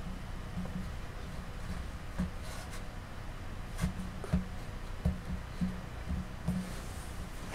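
Hands turn and handle a small plastic model, with light clicks and taps.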